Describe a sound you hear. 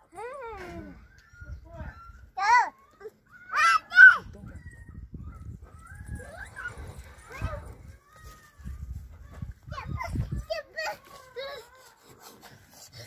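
A puppy yelps and whines in high-pitched bursts.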